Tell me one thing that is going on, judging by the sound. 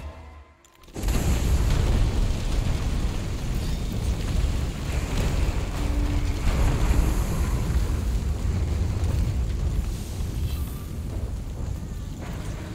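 Fiery explosions roar and rumble loudly.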